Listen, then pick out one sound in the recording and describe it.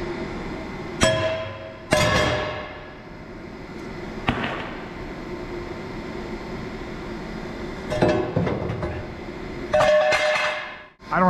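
Metal clanks sharply against metal.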